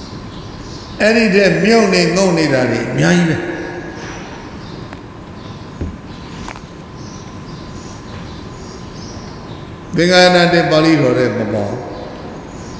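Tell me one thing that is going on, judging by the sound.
An elderly man speaks into a microphone in slow, chanting bursts with long pauses.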